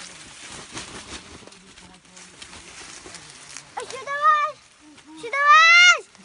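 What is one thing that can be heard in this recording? Leaves rustle as hands pick through them.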